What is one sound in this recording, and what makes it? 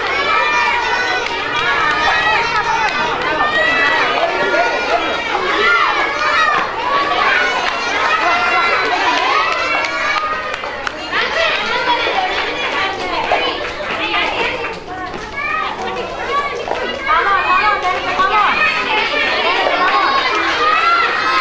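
A crowd of young children cheers and shouts excitedly in an echoing hall.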